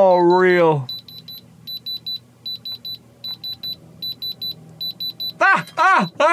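A diamond tester beeps in quick, regular bursts.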